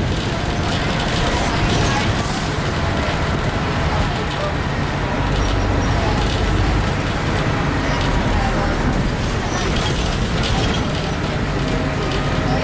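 A bus body rattles and creaks over the road.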